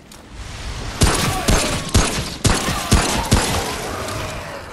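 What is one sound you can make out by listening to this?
Gunshots ring out in quick succession.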